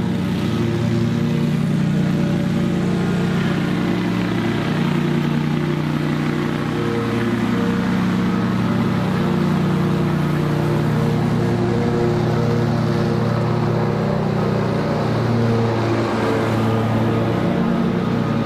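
A ride-on lawn mower engine drones steadily, drawing closer and then passing right by.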